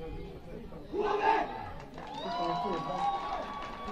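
A group of young men shouts together in a cheer.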